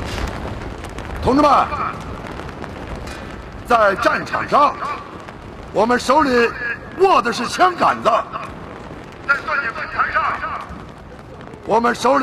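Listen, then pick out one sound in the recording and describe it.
An older man speaks through a microphone, calling out forcefully outdoors.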